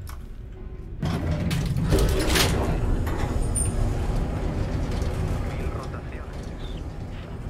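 A lift car rumbles and rattles steadily as it moves.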